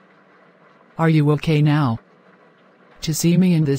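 A woman speaks in a flat, computer-made voice, in short phrases.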